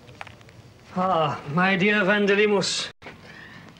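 An elderly man speaks up close.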